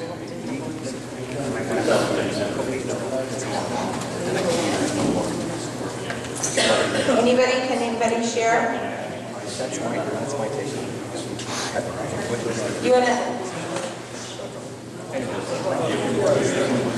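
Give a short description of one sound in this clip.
A woman speaks to a room in a mildly echoing hall.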